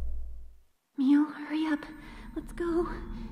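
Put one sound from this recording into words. A young girl urges hurriedly.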